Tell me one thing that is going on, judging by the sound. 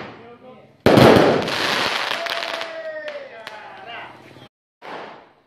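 Firework sparks crackle after a large burst.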